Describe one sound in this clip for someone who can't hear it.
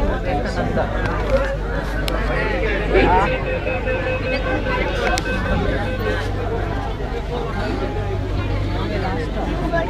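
A crowd of people chatters loudly close by.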